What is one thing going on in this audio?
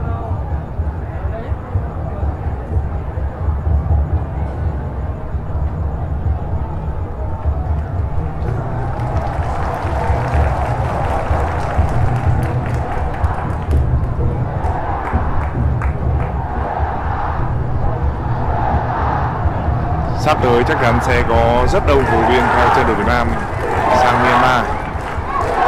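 A large stadium crowd roars and chants steadily throughout.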